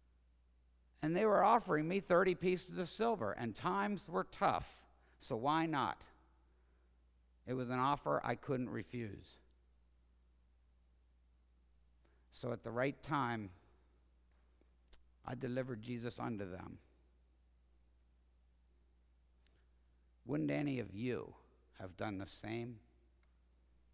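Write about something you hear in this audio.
A man speaks slowly and dramatically, in bursts between pauses, in a large echoing hall.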